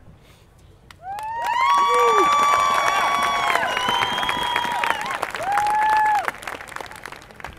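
A marching band plays a loud brass chord that swells and then fades.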